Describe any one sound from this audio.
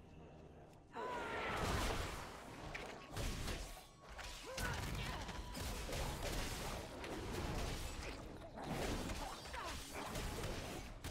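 Game combat effects whoosh and crackle rapidly.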